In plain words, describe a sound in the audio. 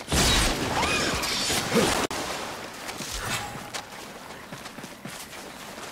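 Water splashes as someone wades through a shallow stream.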